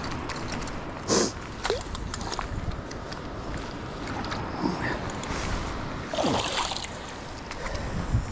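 Boots squelch in wet mud.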